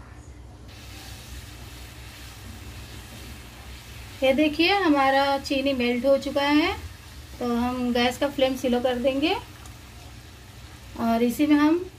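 Syrup bubbles and sizzles in a pan.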